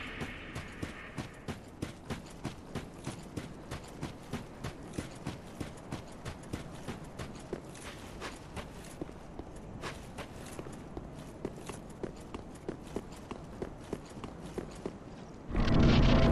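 Armoured footsteps run quickly over stone.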